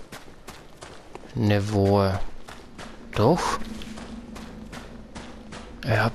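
Footsteps crunch steadily over loose stony ground.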